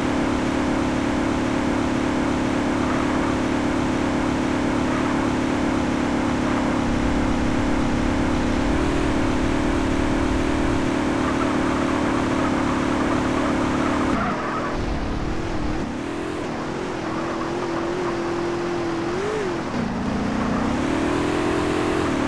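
A small truck engine drones steadily, its pitch shifting as it revs up and down.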